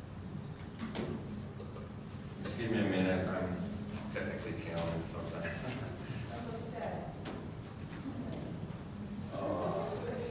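A middle-aged man speaks calmly into a microphone through a loudspeaker.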